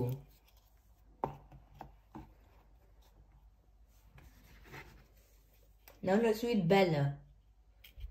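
Small cardboard blocks knock softly as they are set down and picked up.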